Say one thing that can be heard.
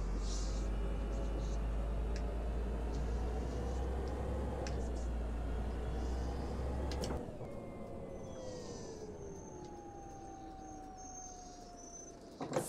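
A bus engine rumbles steadily, then quiets as the bus slows to a stop.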